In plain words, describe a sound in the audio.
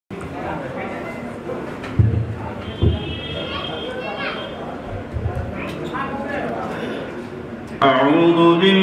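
A young man speaks through a microphone and loudspeakers.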